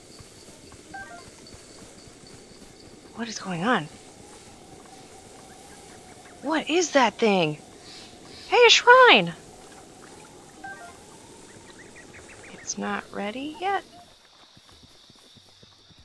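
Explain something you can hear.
Footsteps rustle softly through grass.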